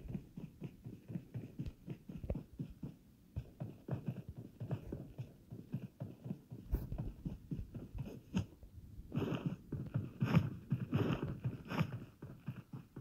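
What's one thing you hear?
Footsteps thud quickly and steadily on grass.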